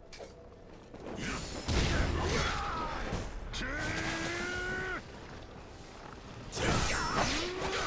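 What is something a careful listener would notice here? Blades slash and strike hard in a fight.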